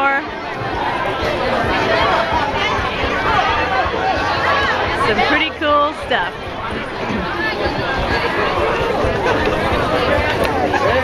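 A large crowd of men and women chatters loudly outdoors.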